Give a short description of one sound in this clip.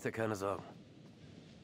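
A man speaks quietly up close.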